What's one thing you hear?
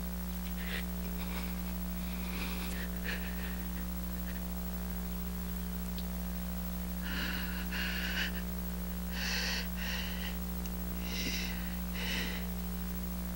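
A middle-aged man speaks in a low, strained voice nearby.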